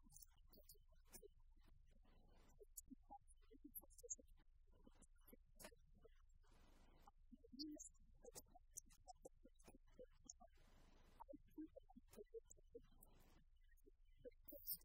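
A woman lectures calmly, heard through a microphone in a large room.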